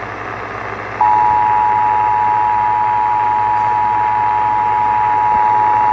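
A radio sounds a steady, piercing alert tone.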